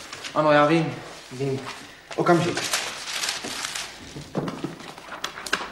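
Papers rustle as someone leafs through them.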